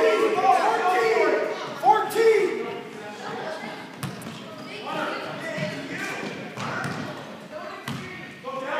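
A basketball thumps on a wooden floor in an echoing gym.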